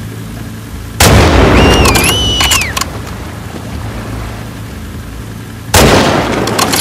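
A rifle fires loud, echoing shots.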